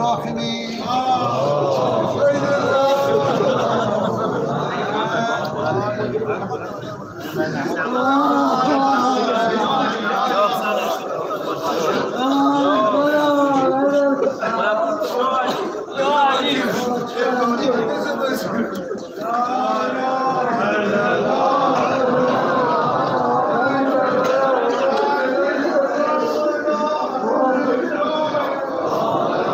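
A large crowd of men chants loudly together in an echoing hall.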